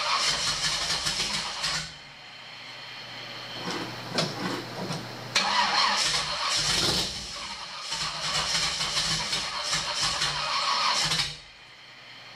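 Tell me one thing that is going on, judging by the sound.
A car engine revs hard in loud bursts.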